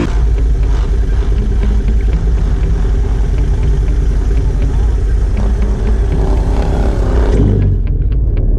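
An all-terrain vehicle engine roars as it drives past close by.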